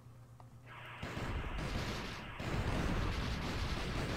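Arcade game explosions boom and crackle.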